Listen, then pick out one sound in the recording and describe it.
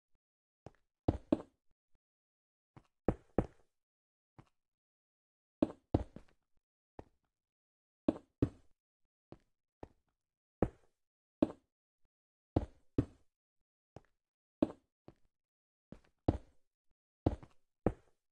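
Footsteps tap in pairs on hard stone.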